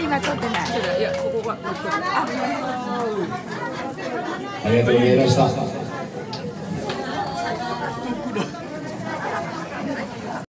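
Adults talk with animation close by.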